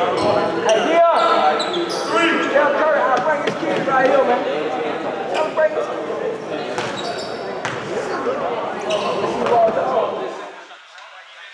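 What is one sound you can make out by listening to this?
Several men talk and call out in a large echoing gym.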